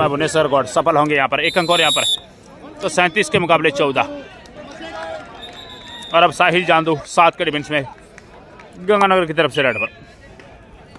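Young men shout loudly and excitedly nearby.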